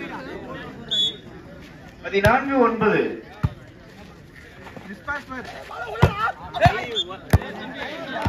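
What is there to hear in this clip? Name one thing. A crowd of men cheers and shouts outdoors.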